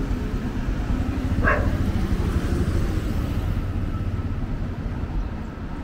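Light traffic drives along a street nearby.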